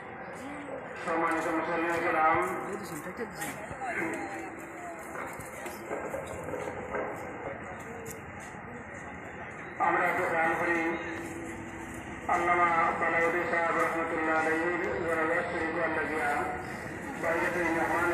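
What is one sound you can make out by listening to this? A man calls out loudly in a long, sung chant.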